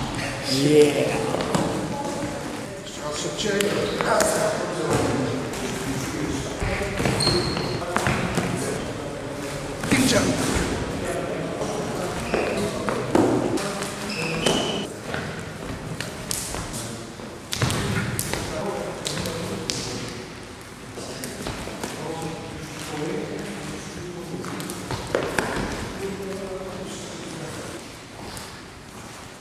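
A man talks calmly, explaining, in an echoing hall.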